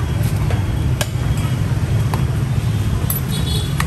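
A metal spoon scrapes and clinks against a tray.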